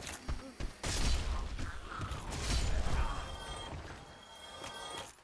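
A sword slashes and strikes a creature.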